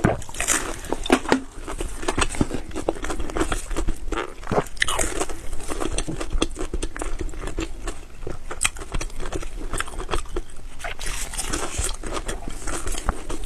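A woman blows on hot food with short puffs of breath.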